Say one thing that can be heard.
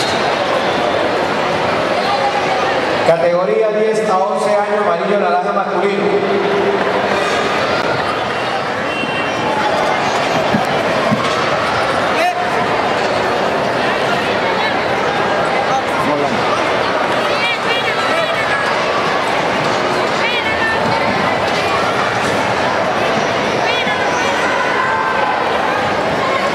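A large crowd murmurs and calls out in an echoing hall.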